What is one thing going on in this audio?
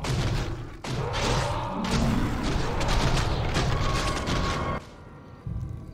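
Spell and weapon effects clash in a fast battle.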